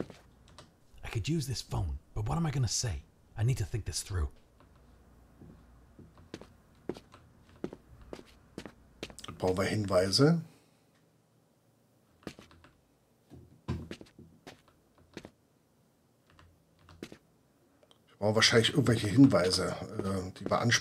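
An older man talks calmly into a microphone.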